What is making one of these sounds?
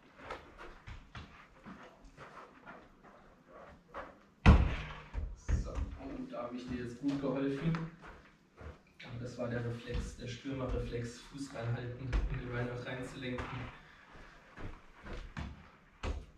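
A ball thuds against a wall and the floor as it is kicked.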